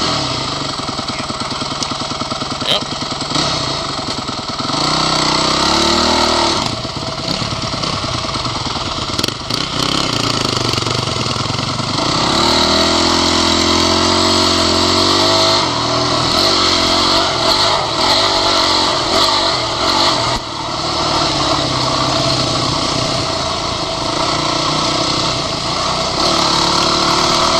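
A motorcycle engine revs loudly and close by, rising and falling in pitch.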